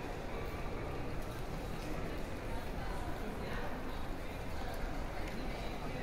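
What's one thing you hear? High heels click on pavement.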